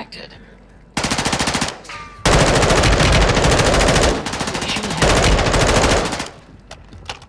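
A rifle fires in rapid bursts, close by.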